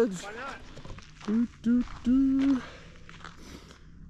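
Footsteps crunch on gravelly rock.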